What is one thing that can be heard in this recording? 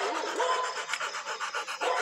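A dog pants close by.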